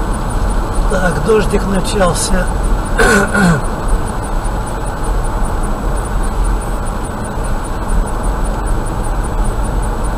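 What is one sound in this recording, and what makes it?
A car drives steadily along a road, with a low rumble of tyres and engine.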